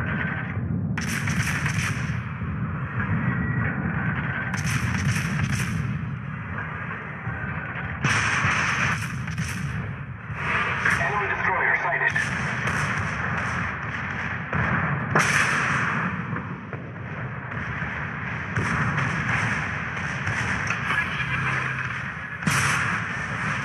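Heavy naval guns boom loudly, again and again.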